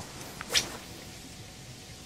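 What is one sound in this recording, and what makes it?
A fishing reel whirs softly as it is wound in.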